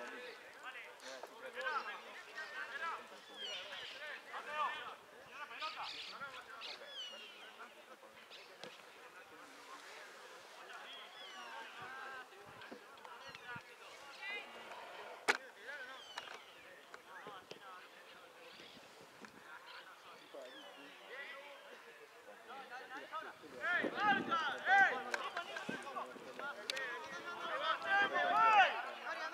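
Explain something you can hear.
Players shout to each other from a distance, outdoors in the open.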